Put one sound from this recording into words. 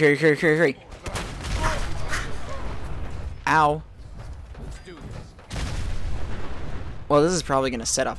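An explosion booms and roars as a fireball.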